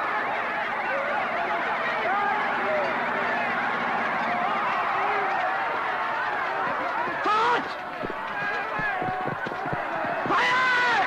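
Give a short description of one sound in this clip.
A large crowd of men and women shouts and screams in panic.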